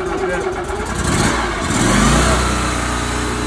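An engine cranks and starts up.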